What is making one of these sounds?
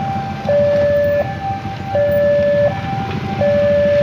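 A motorcycle drives past.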